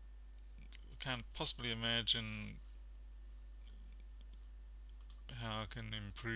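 A man talks calmly close to a microphone.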